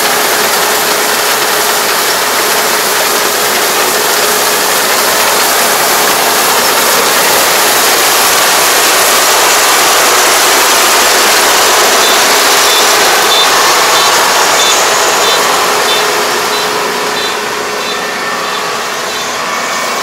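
Rice stalks rustle and crackle as a combine harvester cuts through them.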